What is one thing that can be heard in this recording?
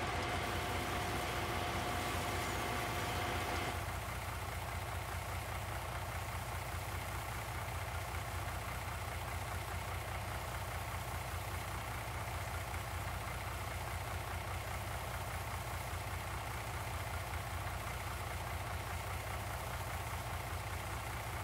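Grain pours steadily from a conveyor into a truck's trailer.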